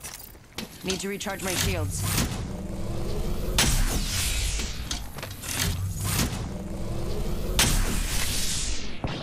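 An energy device charges with a rising electric whine.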